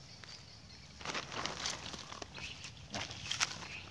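Dry leaves rustle and crackle.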